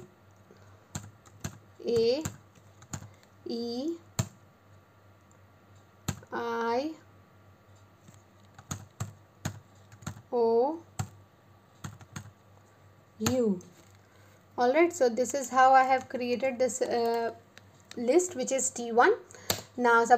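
Keys click on a keyboard in short bursts of typing.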